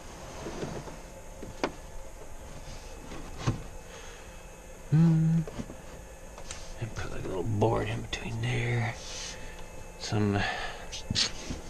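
Cables and plastic rustle and scrape as they are handled.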